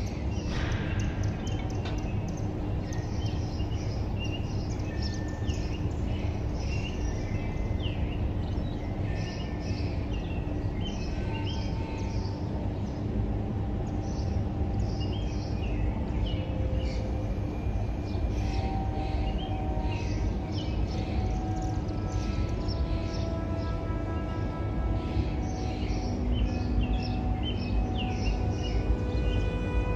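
Leaves rustle in a light breeze.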